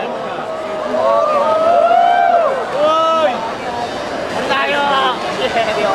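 A crowd of children and adults chatters and calls out nearby.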